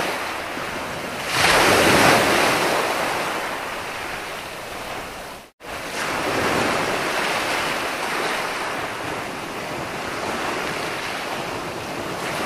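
Ocean waves break and wash up onto the shore with a steady rushing roar.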